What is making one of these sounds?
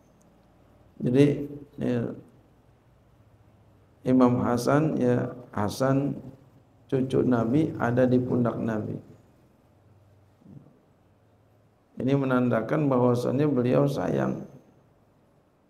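A man speaks calmly through a microphone, in phrases with pauses.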